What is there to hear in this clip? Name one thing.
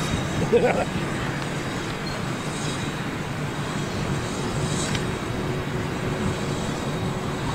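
A jet airliner's engines hum steadily as it taxis nearby.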